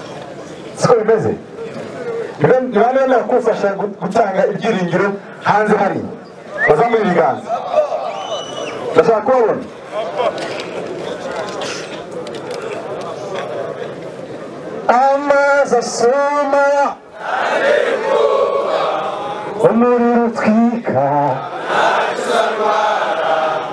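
A young man shouts with animation into a microphone over loudspeakers outdoors.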